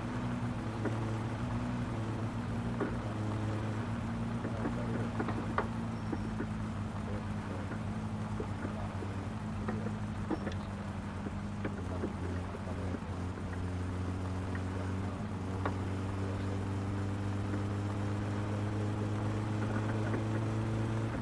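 A car engine hums steadily, rising and falling as it drives.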